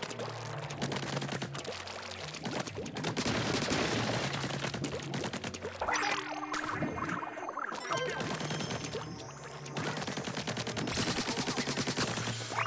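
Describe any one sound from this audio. Ink splatters in wet squelching bursts.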